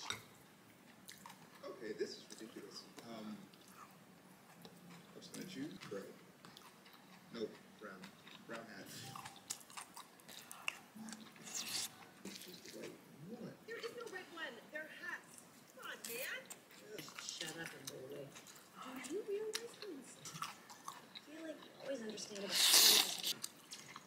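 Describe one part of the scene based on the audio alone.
A young woman chews and slurps food close by.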